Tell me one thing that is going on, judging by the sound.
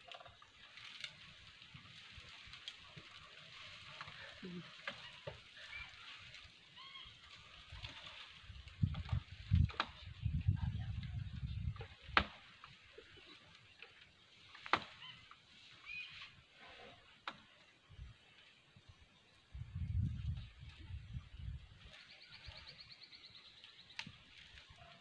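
Branches snap and crack as an elephant tears at a tree.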